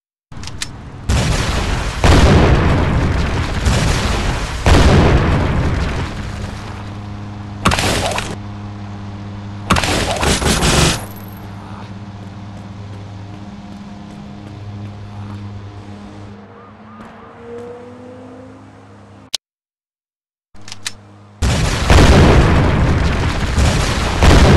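A rocket launcher fires in loud, roaring blasts.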